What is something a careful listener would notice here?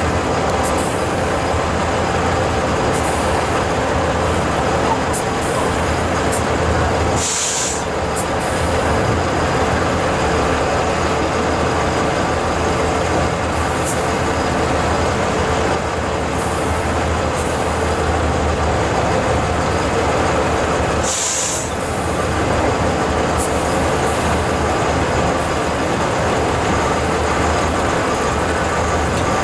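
A heavy truck engine roars and labours as the truck climbs a steep slope.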